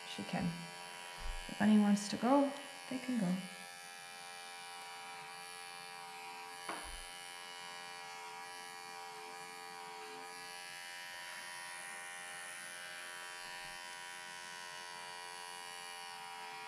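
Electric clippers buzz steadily while shearing fur.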